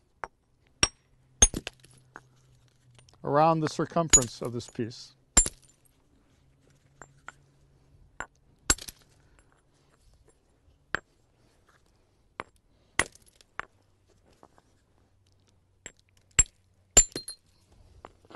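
A hammerstone strikes flint with sharp, ringing clicks.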